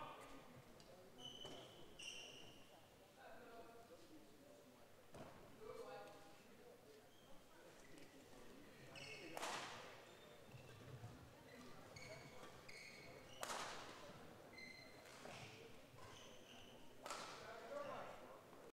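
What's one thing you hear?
Sneakers squeak on a court floor in a large echoing hall.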